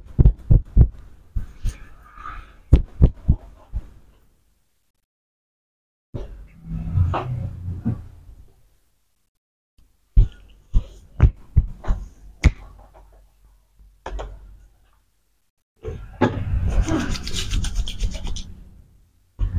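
Hands tap and slap sharply on a head.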